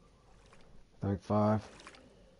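A fishing rod swishes as it is cast.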